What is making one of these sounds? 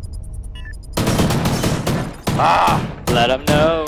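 A sniper rifle fires a loud shot.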